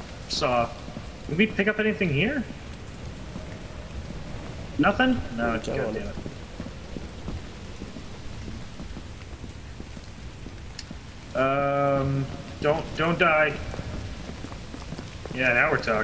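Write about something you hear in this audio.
A man talks into a close microphone in short, animated bursts.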